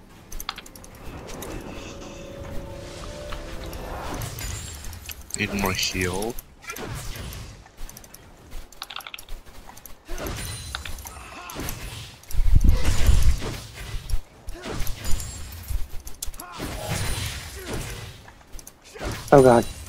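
Game spell effects whoosh and blows strike in a fast video game battle.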